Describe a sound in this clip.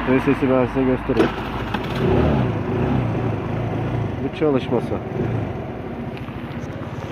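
A scooter engine idles with a low, steady hum.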